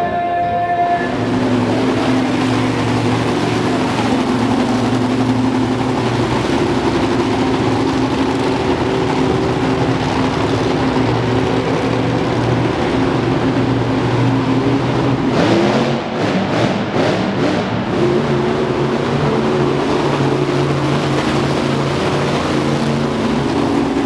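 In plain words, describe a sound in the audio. A monster truck engine roars loudly.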